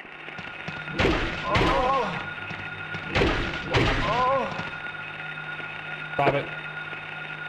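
Heavy blows thud in a fight.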